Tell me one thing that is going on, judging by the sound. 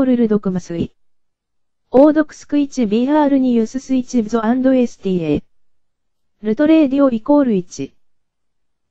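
A synthetic computer voice reads text aloud in short bursts.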